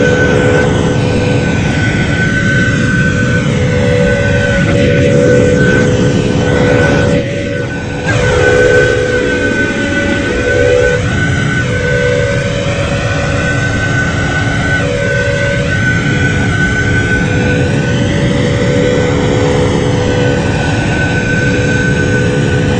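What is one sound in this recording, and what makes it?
A jet airliner's engines roar and whine steadily.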